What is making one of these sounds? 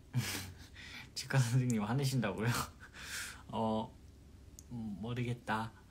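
A young man laughs softly.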